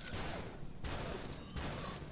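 A pistol shot cracks.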